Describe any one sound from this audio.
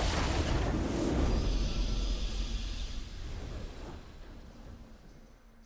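A triumphant victory fanfare swells and slowly fades.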